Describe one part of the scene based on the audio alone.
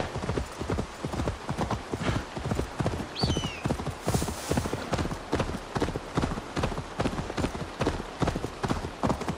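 Horse hooves gallop quickly over soft ground.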